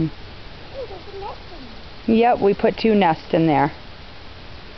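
A young girl talks loudly close by.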